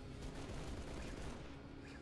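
A gun fires a rapid burst.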